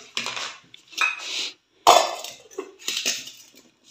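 A metal bowl clanks against a hard counter.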